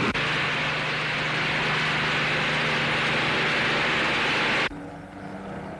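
Propeller aircraft engines roar loudly and steadily.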